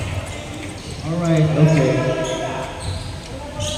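A young man calls out loudly across an echoing hall.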